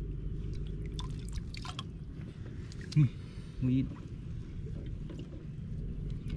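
Water splashes as a hand moves through shallow water.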